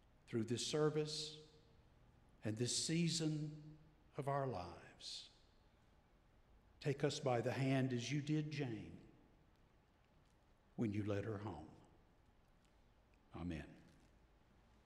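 An elderly man speaks slowly and calmly into a microphone.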